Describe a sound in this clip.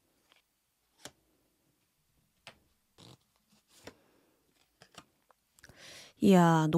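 A card is laid down on a soft cloth with a light tap.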